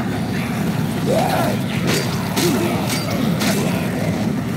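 Heavy blows thud and smack in quick succession.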